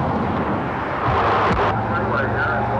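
A car drives past close by with a rushing whoosh.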